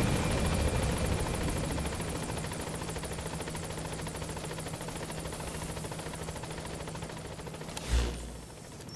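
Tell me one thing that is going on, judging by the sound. A helicopter roars overhead, its rotor thudding.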